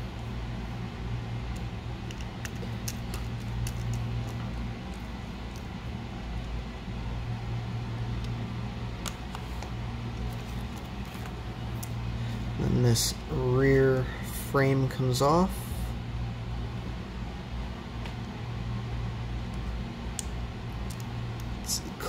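Small plastic parts click and tap softly as hands handle them.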